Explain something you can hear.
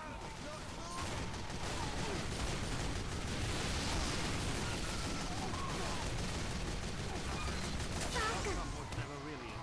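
Guns fire in a video game battle.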